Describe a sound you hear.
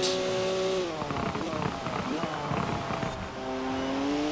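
Tyres squeal on a wet road through a bend.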